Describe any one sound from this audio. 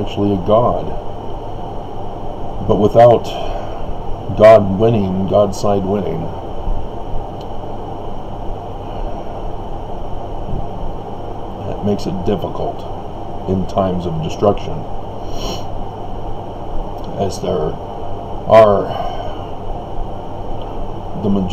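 A middle-aged man speaks quietly and haltingly, close to the microphone.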